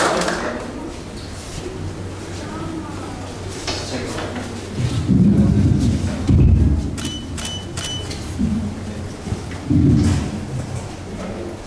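A crowd murmurs in a large indoor hall.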